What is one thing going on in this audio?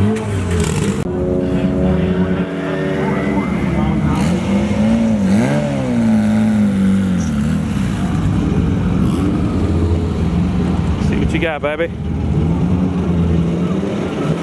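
A car engine idles loudly with a rough, rumbling burble and revs up in bursts.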